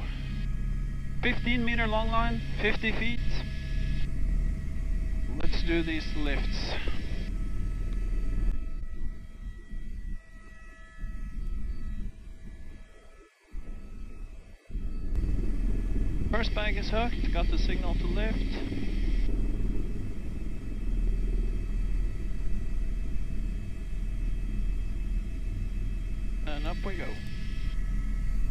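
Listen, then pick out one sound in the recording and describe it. A helicopter engine and rotor drone steadily and loudly from close by.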